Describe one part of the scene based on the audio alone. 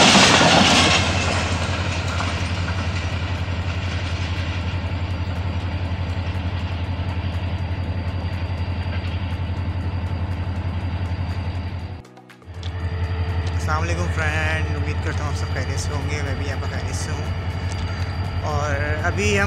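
Freight wagons rumble and clatter steadily along the rails.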